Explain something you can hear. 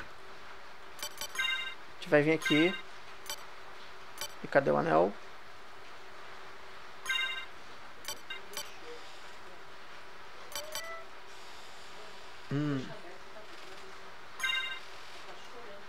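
Short electronic menu beeps sound now and then.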